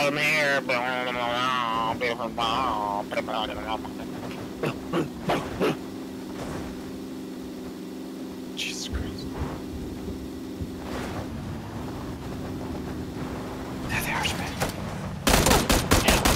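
A car engine hums steadily while driving over rough ground.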